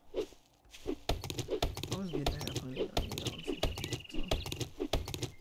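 An axe chops into a wooden stump with dull thuds.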